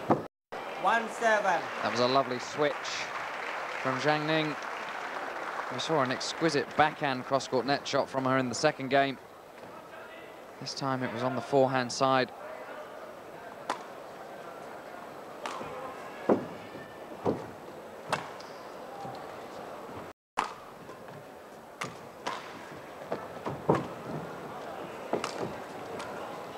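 A shuttlecock is struck sharply by a racket.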